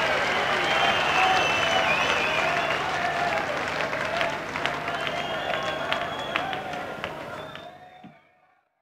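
A rock band plays live in a large echoing hall, and the sound fades away.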